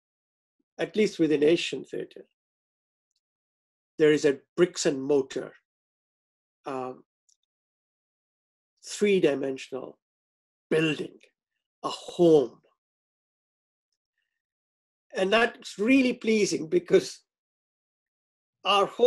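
A middle-aged man speaks calmly into a microphone over an online call, pausing between phrases.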